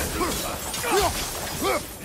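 Blades swing and whoosh with a fiery roar.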